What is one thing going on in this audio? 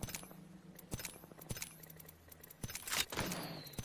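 Short game menu clicks tick several times.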